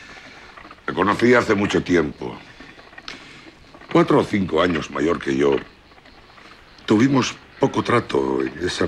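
A middle-aged man answers calmly nearby.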